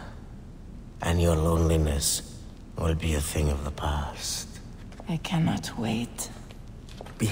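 A woman speaks softly up close.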